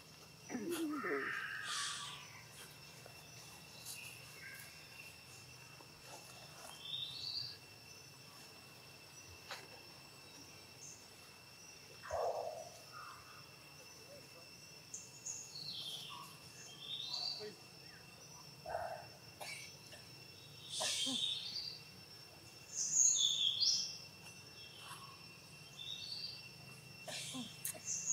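Dry leaves rustle and crunch as monkeys move about.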